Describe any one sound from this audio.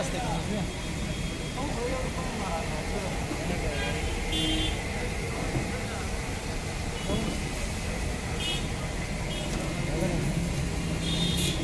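Men talk nearby in the background.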